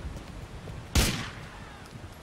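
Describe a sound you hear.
A gunshot cracks once.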